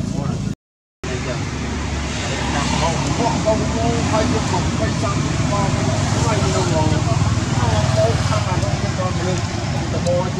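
Dry leaves rustle and crackle on the ground.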